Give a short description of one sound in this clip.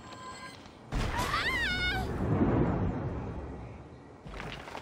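A magical whoosh and chime ring out as a stone pillar lights up.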